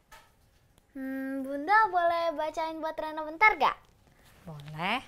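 A young girl speaks pleadingly.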